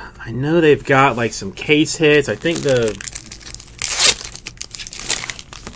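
A foil card pack crinkles and rustles in someone's hands.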